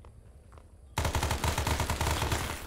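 A machine gun fires a rapid, loud burst.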